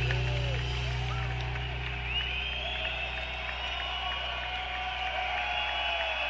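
A live band plays loudly with piano and drums in a large echoing arena.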